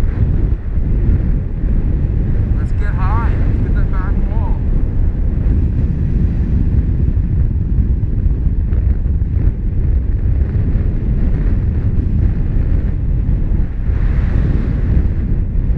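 Strong wind rushes and buffets steadily.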